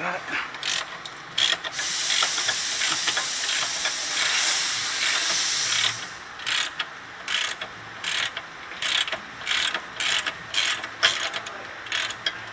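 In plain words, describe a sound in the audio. A ratchet wrench clicks in short bursts as a bolt is turned.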